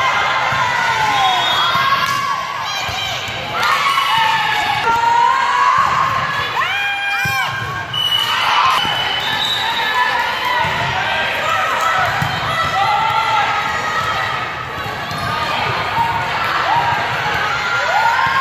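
Young women call out to each other across a large echoing gym.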